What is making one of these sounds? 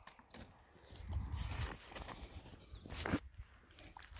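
Boots crunch on dry stubble.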